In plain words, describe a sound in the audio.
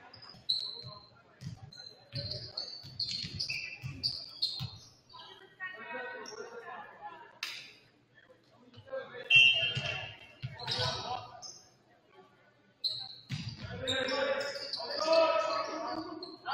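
A volleyball is struck with sharp thumps.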